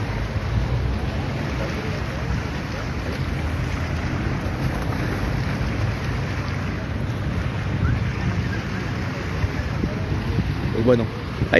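A crowd of men and women murmurs at a distance outdoors.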